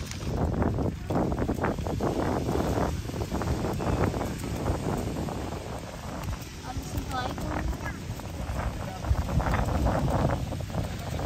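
Wind blusters against a microphone outdoors.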